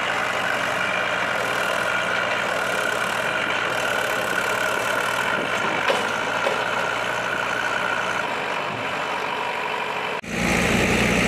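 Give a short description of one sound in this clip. A tractor engine idles nearby.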